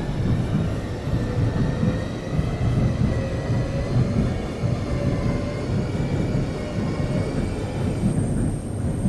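An electric train motor whines, wavering in pitch, then falls quiet.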